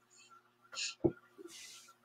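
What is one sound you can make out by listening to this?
Hands pat and smooth fabric on a table.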